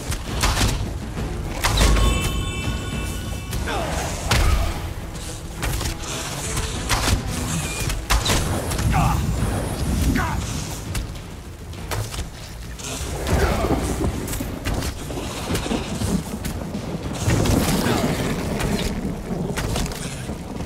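Giant wasps buzz and screech nearby.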